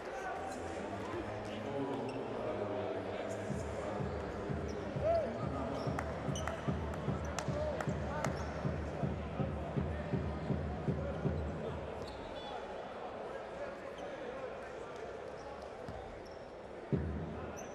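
A crowd murmurs and cheers in a large echoing arena.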